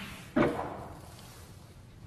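A snooker ball clicks softly as it is set down on the cloth.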